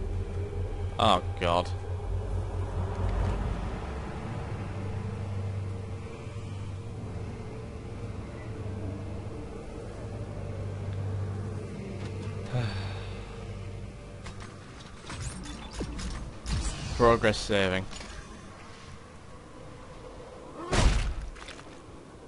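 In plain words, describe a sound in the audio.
A man shouts in a strained voice.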